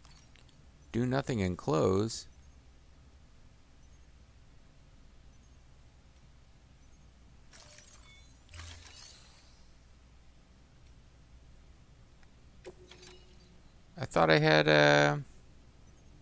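Electronic menu tones chime as selections change.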